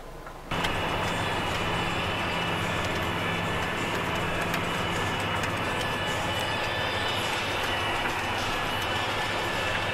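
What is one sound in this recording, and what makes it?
A disc harrow rattles and clatters through dry soil.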